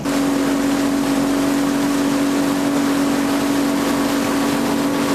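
Water splashes against the hull of a small sailboat.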